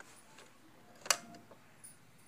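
A cassette door snaps shut.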